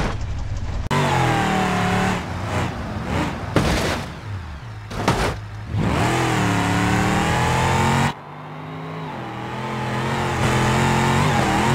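A car engine revs and whines at speed.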